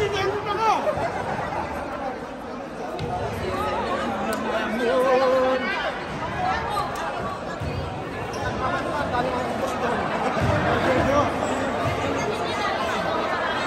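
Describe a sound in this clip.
A crowd of young men and women chatter and shout nearby in a large echoing hall.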